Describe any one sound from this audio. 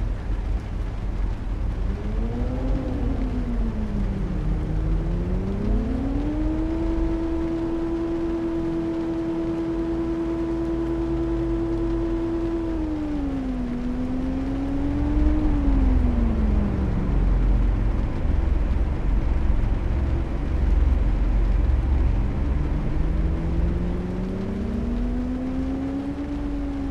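A car engine hums and revs up and down as the car drives.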